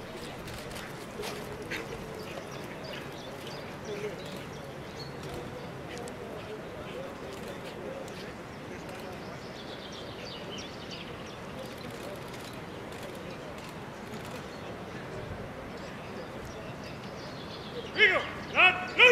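A large crowd murmurs and chatters outdoors at a distance.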